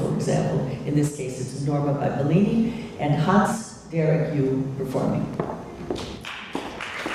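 An elderly woman speaks calmly through a microphone in a large echoing hall.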